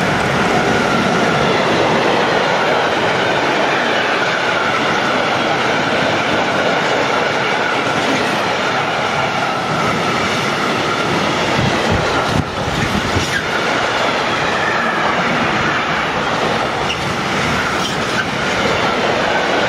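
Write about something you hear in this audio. Train wheels squeal and clatter over the rails.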